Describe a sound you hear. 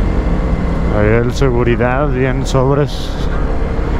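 A motorcycle engine revs up sharply through the gears.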